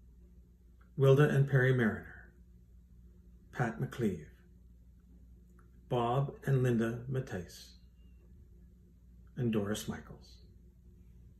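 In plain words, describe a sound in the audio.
An older man speaks calmly and slowly, close by, with pauses between phrases.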